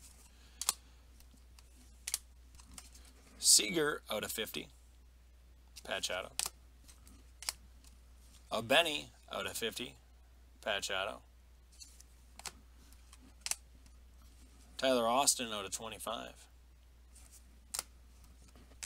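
Plastic card cases click and tap as they are handled.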